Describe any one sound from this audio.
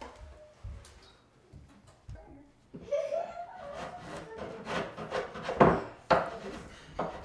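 Wooden panels knock and bump as a man handles them.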